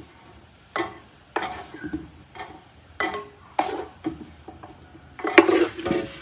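A metal spoon scrapes and clinks against a pot.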